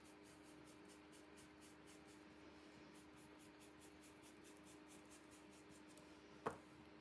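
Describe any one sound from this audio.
A stiff brush softly taps and dabs against a plastic stencil.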